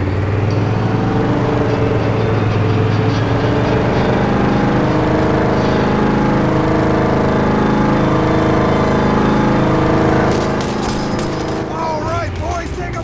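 A vehicle engine roars steadily as it drives.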